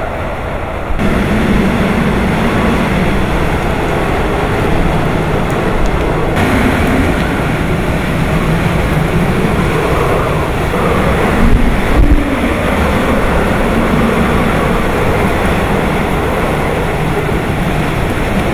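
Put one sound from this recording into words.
Heavy rain lashes down and splashes on the road.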